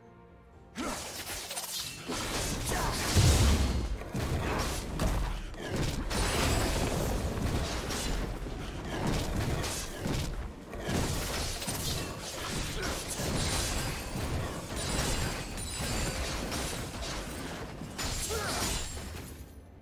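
Game spell effects crackle and boom during a fight.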